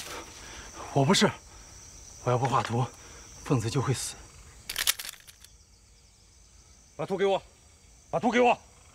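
A young man speaks firmly, close by.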